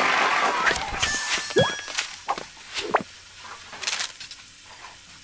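Short game chimes and pops sound.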